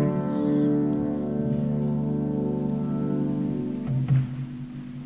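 A keyboard plays sustained chords.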